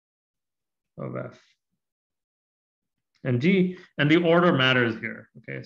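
A man speaks calmly into a microphone, explaining at a measured pace.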